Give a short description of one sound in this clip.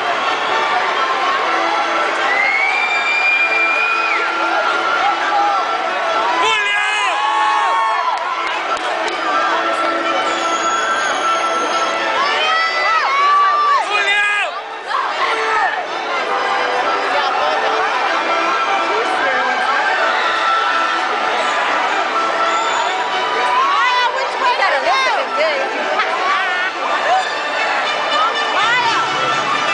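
A large crowd cheers and whoops in a big echoing arena.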